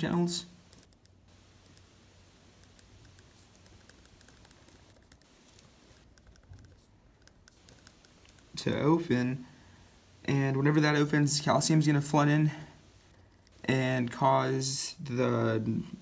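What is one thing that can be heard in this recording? A pen scratches softly on paper.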